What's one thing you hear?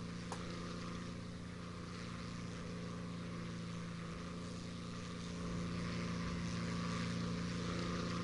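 Wind rushes past a plane.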